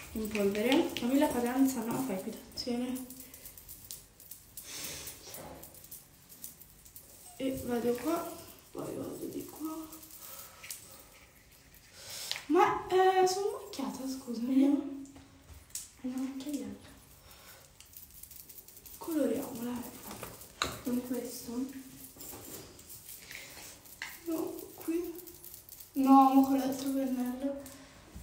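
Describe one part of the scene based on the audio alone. A young woman talks casually and close by, with pauses.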